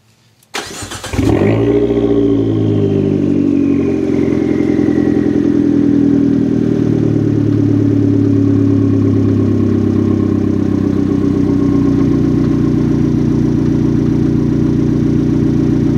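A car's exhaust rumbles deeply and steadily at idle, heard close by outdoors.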